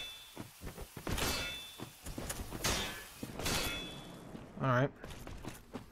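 A heavy blade strikes armour with sharp metallic clangs.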